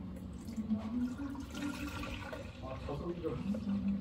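Milk pours into a plastic blender jug.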